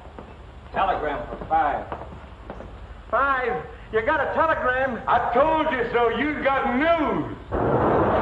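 A man shouts and sings loudly with animation.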